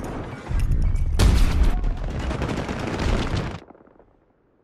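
Loud battle noise of gunfire and blasts roars close by, then cuts off.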